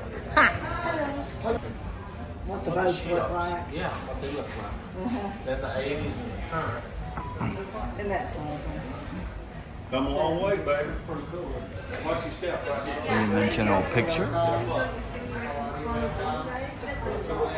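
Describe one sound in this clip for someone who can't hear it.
A man talks cheerfully close to the microphone.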